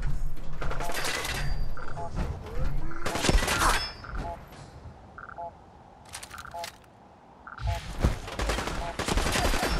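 Heavy metal footsteps clank on a grating.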